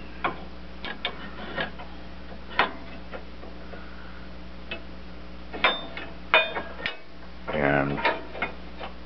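Metal parts clink and rattle as hands work them loose.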